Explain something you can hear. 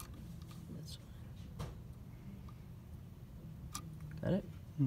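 A metal key clicks as it is fitted into a clamp.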